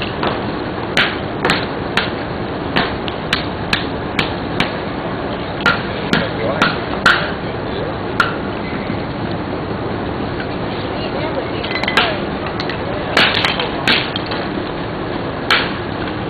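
A hammer strikes a hard object on the ground in sharp, repeated knocks.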